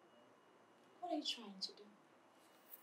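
A young woman speaks with concern close by.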